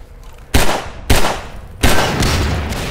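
Pistol shots ring out loudly with echoing reverberation.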